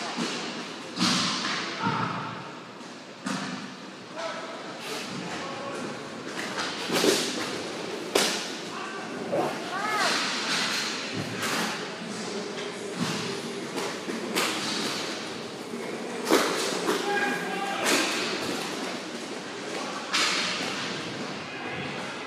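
Plastic wheels roll and scrape across a hard floor.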